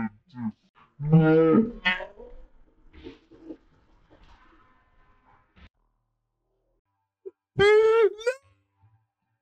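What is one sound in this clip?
A young man shouts and exclaims excitedly over a microphone.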